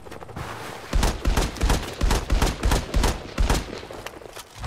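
A pistol fires a rapid series of sharp shots.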